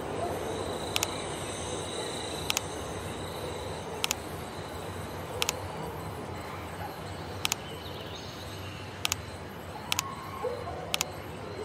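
Short sharp clicks sound as puzzle pieces snap into place.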